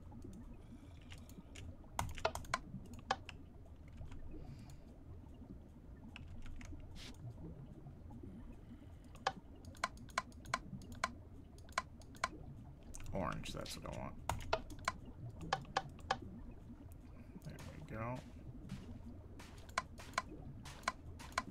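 Game menu clicks sound in quick, irregular bursts.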